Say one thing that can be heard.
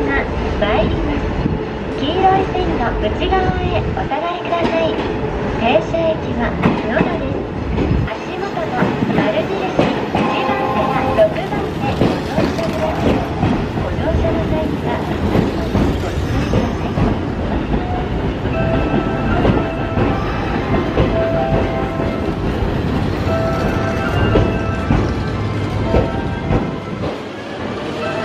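A train rumbles past close by on the tracks.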